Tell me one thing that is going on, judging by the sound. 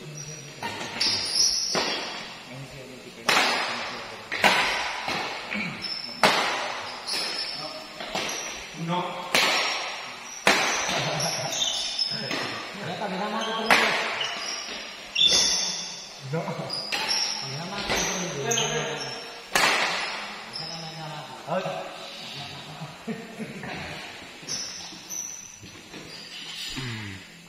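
Rackets strike a shuttlecock with sharp smacks that echo around a large hall.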